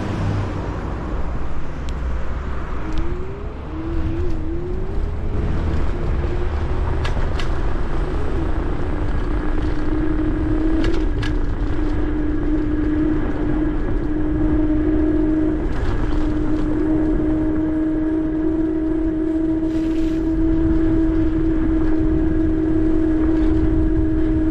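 Tyres roll over a paved path.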